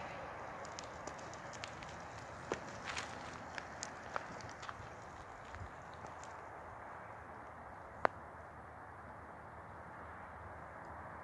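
Scooter tyres roll over rough pavement.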